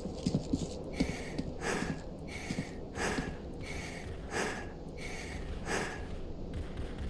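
Footsteps tread at an even pace on a hard floor.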